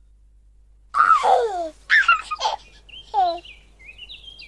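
A baby giggles and coos.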